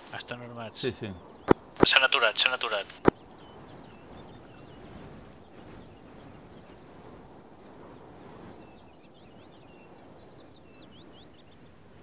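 Footsteps rustle through dry leaves on the ground.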